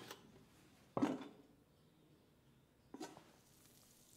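A metal lid clinks against a metal plate.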